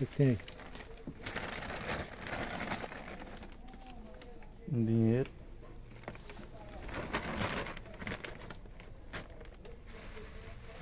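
Hands crinkle and rustle plastic bags.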